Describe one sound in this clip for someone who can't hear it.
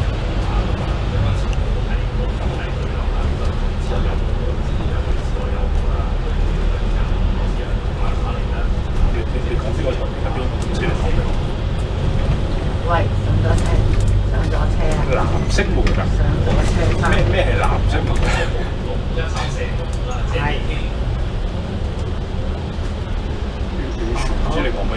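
A diesel double-decker bus engine rumbles as the bus drives along a street.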